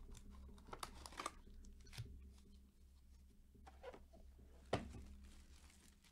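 Foil packs rustle.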